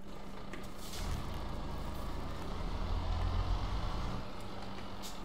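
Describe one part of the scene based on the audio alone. A truck engine rumbles low.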